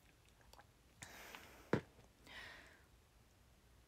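A young woman sips through a straw.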